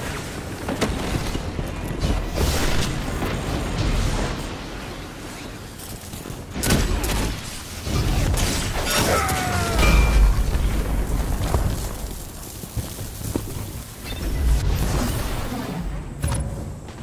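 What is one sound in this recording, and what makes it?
Gunfire crackles in quick bursts.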